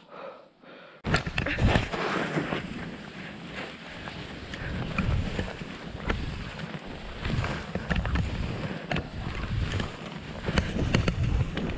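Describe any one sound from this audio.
Skis hiss and scrape through snow close by.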